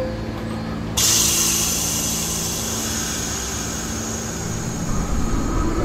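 A train's air brakes release with a loud hiss.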